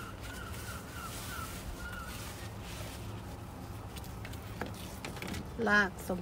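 Soil rustles as a plant slides out of a plastic pot.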